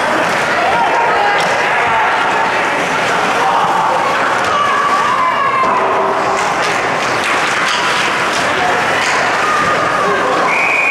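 A crowd of spectators chatters and calls out in a large echoing arena.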